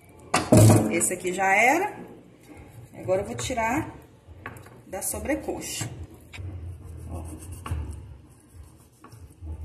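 A knife cuts through raw chicken.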